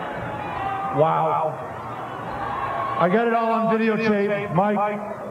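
A man shouts loudly through a microphone and loudspeakers.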